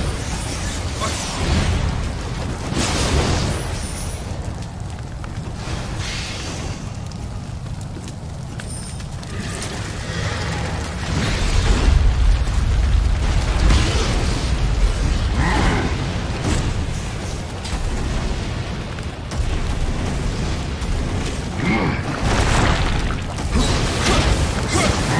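Swords clash and slash in a heavy fight.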